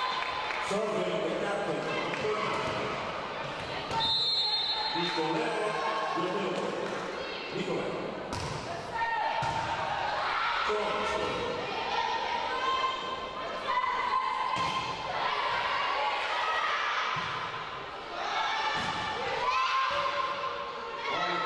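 Shoes squeak on a hard floor in a large echoing hall.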